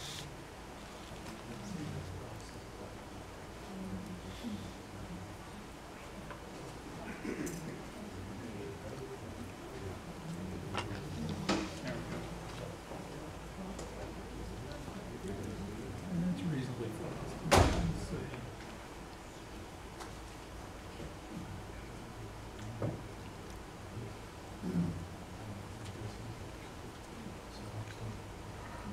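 A man speaks calmly at a distance, giving a talk.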